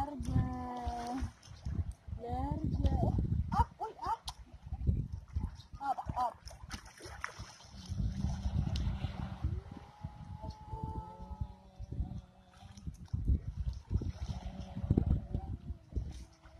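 Water splashes as a child kicks while swimming.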